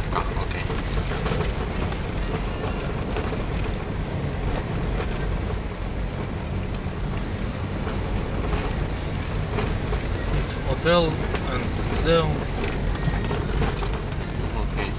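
Tyres crunch and rumble over a rough dirt road.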